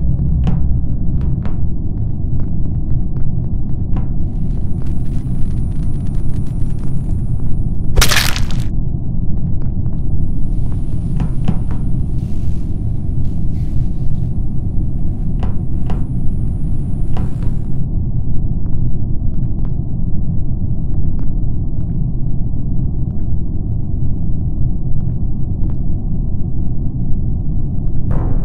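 Footsteps patter steadily on a metal floor.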